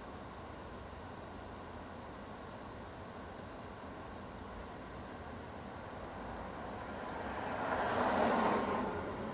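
A car engine idles steadily with a low rumble.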